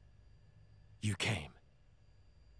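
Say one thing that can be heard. A young man speaks calmly and briefly.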